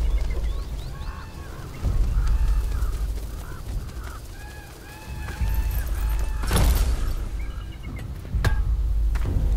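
Birds call overhead in short, repeated cries.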